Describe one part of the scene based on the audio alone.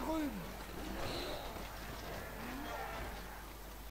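Weapons clash as small groups of soldiers fight.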